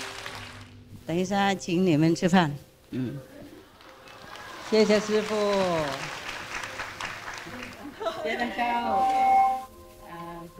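A group of women speak together in unison.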